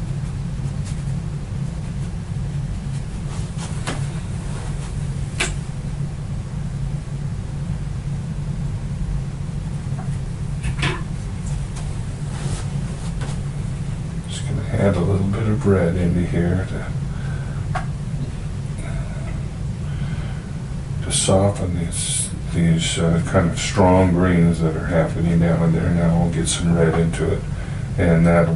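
A brush dabs and brushes softly on paper.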